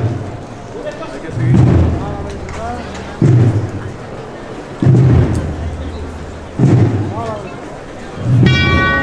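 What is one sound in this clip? A crowd murmurs and chatters outdoors nearby.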